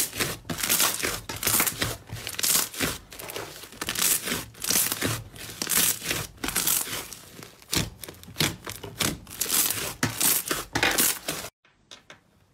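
Hands squish and knead a large lump of sticky slime, with wet crackling and popping.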